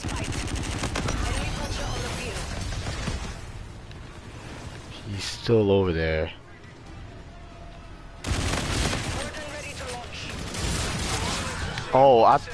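Automatic gunfire rattles rapidly in bursts.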